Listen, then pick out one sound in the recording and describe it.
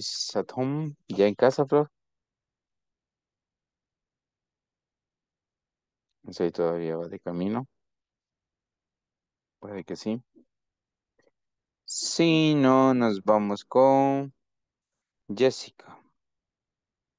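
A man speaks calmly in short bursts through an online call.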